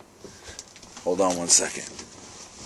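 A man speaks briefly up close, with a short exclamation.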